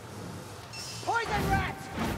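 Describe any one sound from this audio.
A magic staff blasts out a roaring burst of fire.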